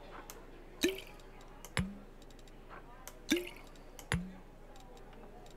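Game menu sounds click and chime as items are picked up and put down.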